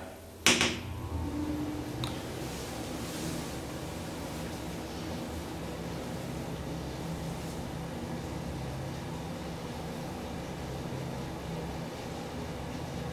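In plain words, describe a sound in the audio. An elevator hums steadily as it travels.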